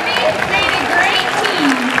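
Water splashes as a large animal surfaces in a pool.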